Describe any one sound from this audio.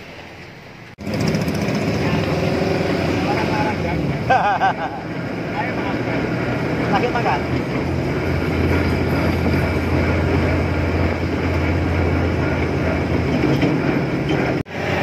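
A pickup truck's engine rumbles as it drives along a road.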